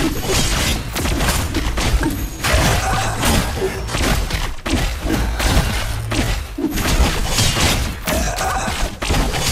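Game battle effects whoosh, clash and zap rapidly.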